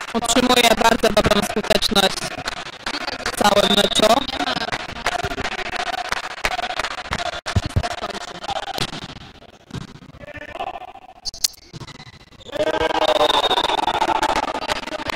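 Young men shout and cheer loudly in an echoing hall.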